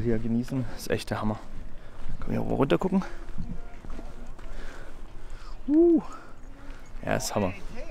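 A young man talks close to the microphone in a casual, lively way.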